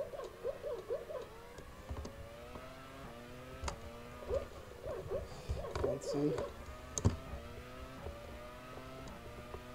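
A racing car engine screams at high revs, climbing in pitch and dropping sharply with each gear change.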